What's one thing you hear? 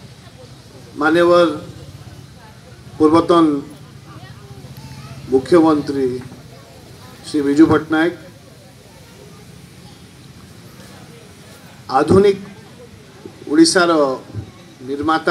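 A man speaks loudly in short bursts through a microphone and loudspeakers outdoors.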